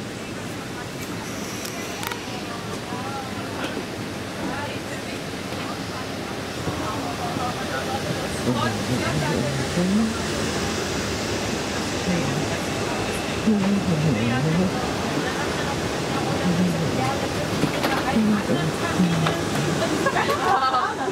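Aircraft cabin ventilation hums and hisses steadily.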